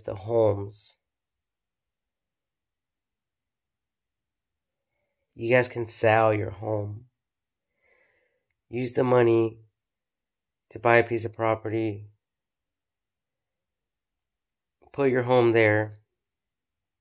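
A man speaks calmly and close up, in short phrases with long pauses.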